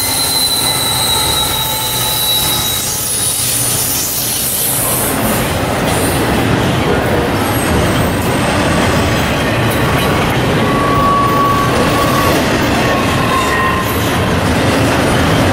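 Freight cars clatter over the rails.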